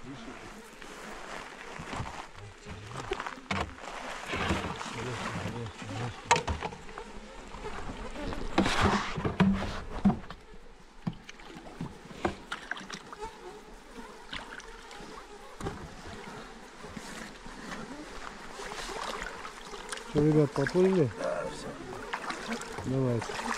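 Water splashes and sloshes around an inflatable boat.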